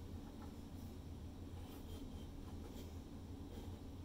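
A palette knife scrapes lightly across wet paint.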